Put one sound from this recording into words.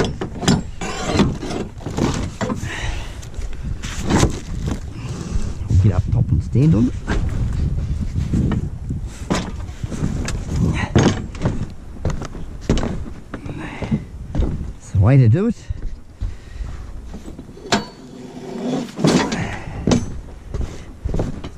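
Plastic bin lids bang shut with hollow thuds.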